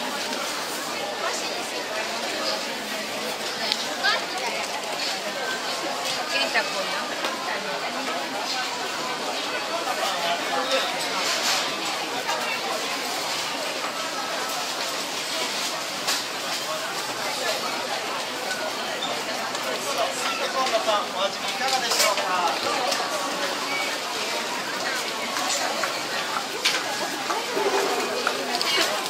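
A crowd of people chatters and murmurs all around.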